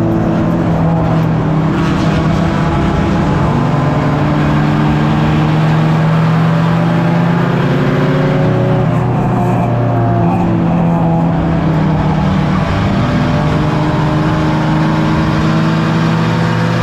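A race car engine roars loudly from close by, its pitch rising and falling as it speeds up and slows down.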